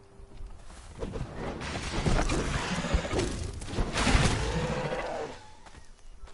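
An axe strikes flesh with heavy thuds.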